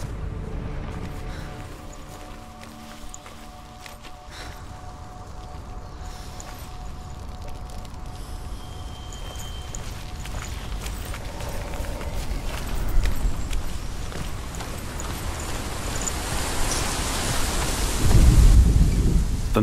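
Footsteps tread on stone and grass.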